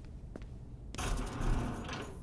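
A heavy sliding door whooshes open.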